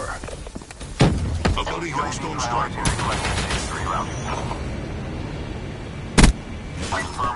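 Missiles explode with heavy booms.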